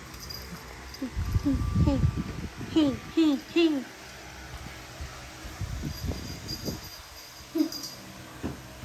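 A puppy whines and yelps in short, high cries.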